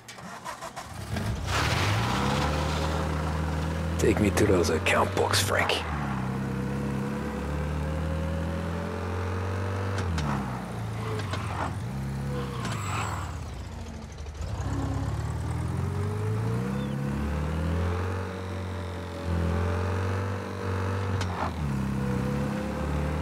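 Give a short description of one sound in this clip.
An old car engine revs up and shifts gears repeatedly while driving.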